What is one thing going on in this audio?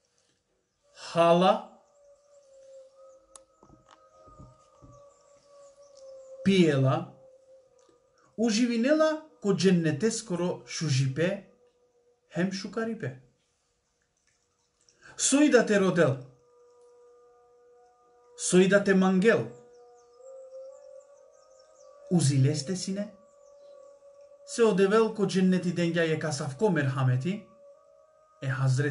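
A man speaks calmly and close to the microphone, in short bursts with pauses.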